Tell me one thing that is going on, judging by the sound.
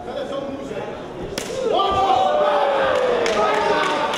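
Punches thud against bodies.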